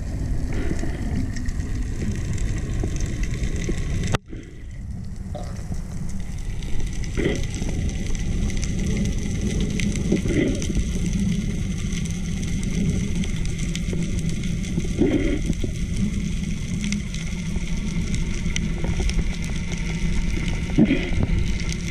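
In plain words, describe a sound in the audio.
Water rumbles and swishes in a low, muffled way, heard from underwater.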